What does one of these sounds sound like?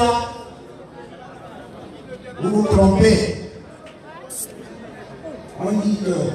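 A man speaks loudly and forcefully into a microphone over a loudspeaker, echoing outdoors.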